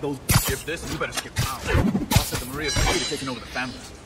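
A web shoots out with a sharp whoosh.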